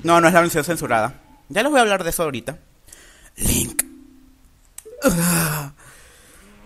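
A man laughs deeply and menacingly.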